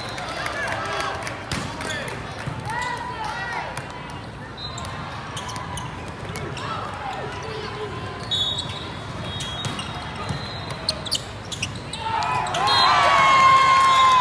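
A volleyball is struck with hands.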